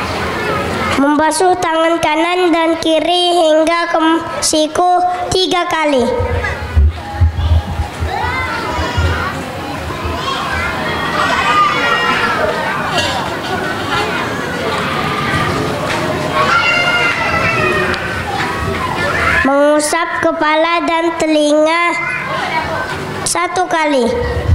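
A young boy sings through a loudspeaker in long, held notes.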